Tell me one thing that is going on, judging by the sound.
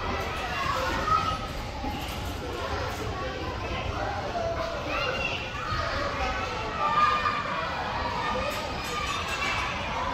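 Children chatter and shout in a large echoing hall.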